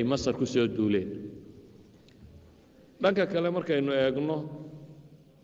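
A man speaks with animation into a microphone, with a slight echo.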